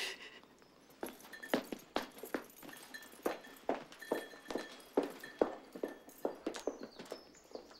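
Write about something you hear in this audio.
Footsteps tap on a hard floor as people walk away.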